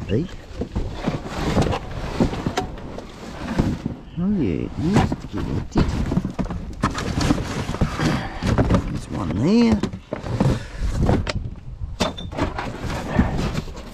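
Cardboard boxes rustle and scrape as they are pushed around by hand.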